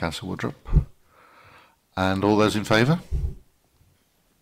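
A middle-aged man speaks calmly and formally into a microphone.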